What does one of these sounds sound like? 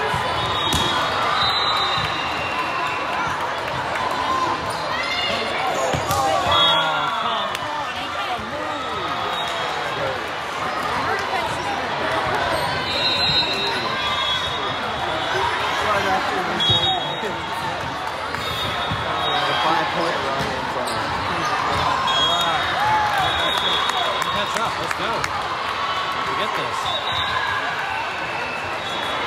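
Shoes squeak sharply on the hard floor.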